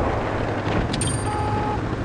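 A tank cannon fires with a loud bang.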